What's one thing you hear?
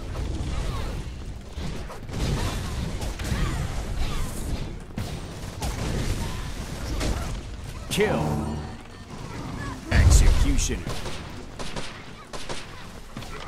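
Weapons fire rapidly in a chaotic game battle.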